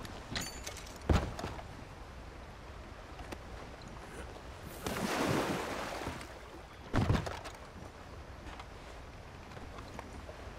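Water laps gently against a small wooden boat.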